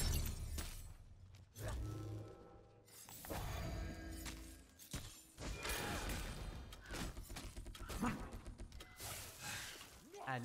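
Magic blasts and weapon clashes burst out in a fast fight.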